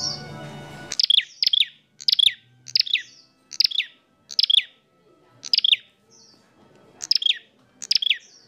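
A small bird chirps loudly and repeatedly, close by.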